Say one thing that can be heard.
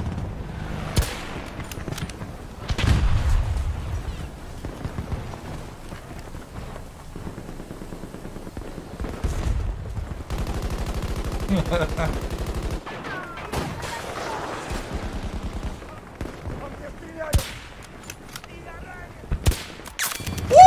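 Rifle shots crack and boom.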